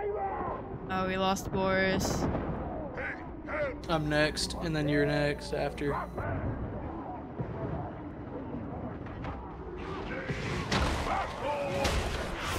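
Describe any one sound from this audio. Explosions boom and roar.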